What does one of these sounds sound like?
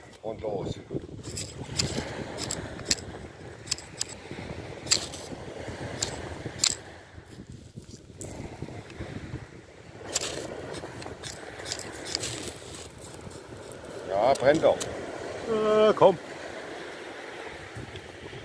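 A knife shaves thin curls from a stick of palm wood.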